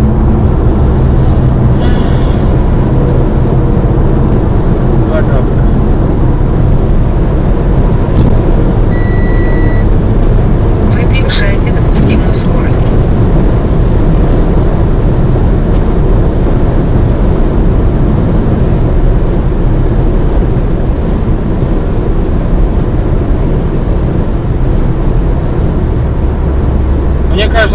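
A car engine hums steadily with loud road and wind noise inside the car.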